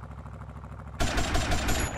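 Blows bang against a car's body.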